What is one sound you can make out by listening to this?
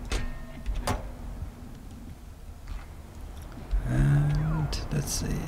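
Many machines hum and clank steadily.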